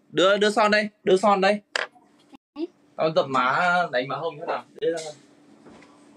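A young man talks animatedly close to a phone microphone.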